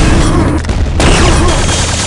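A rail gun fires with a sharp zap.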